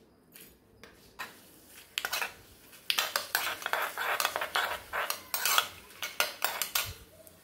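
Hot oil with spices sizzles as it is poured into a pot of cooked vegetables.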